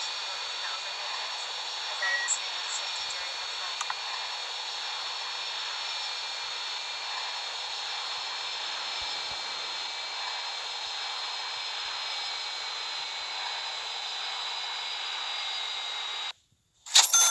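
A jet engine whines steadily as a plane taxis.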